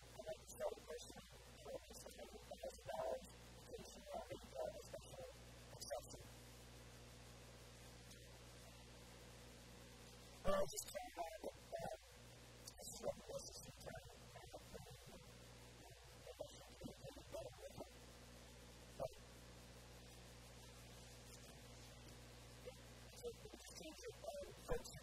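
A man speaks with animation into a small microphone, with pauses.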